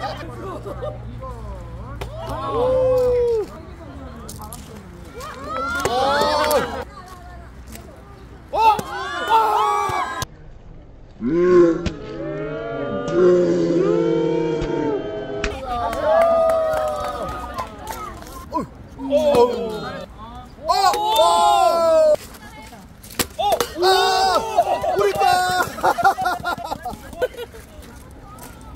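A group of children and adults shout and cheer excitedly outdoors.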